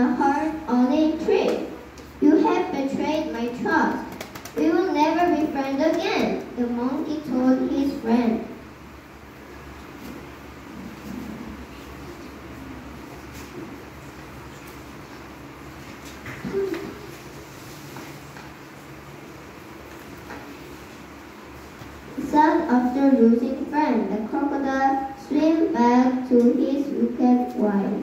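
A young girl tells a story into a microphone, speaking clearly and with expression.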